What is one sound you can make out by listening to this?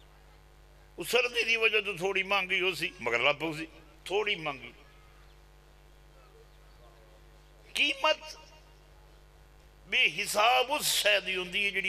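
A middle-aged man speaks forcefully into a microphone in bursts, heard through a loudspeaker.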